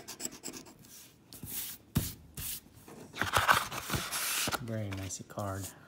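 A stiff card rustles as it is handled.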